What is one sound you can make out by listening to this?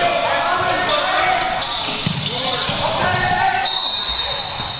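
Spectators and players talk and call out in a large echoing gym.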